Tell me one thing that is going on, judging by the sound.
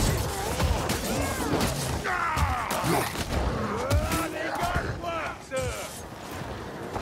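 A sword slashes and strikes flesh with sharp, wet hits.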